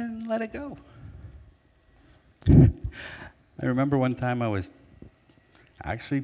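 A middle-aged man speaks with animation through a microphone in a large, echoing hall.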